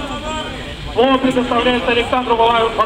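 A man speaks loudly through a megaphone, his voice harsh and amplified.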